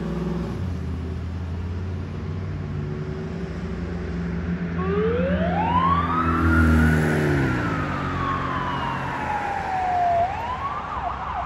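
An ambulance engine rumbles as it pulls away.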